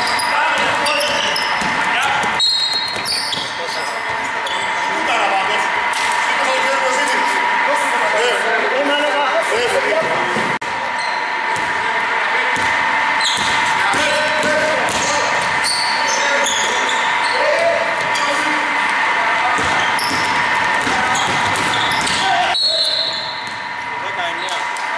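Men shout to each other across an echoing gym.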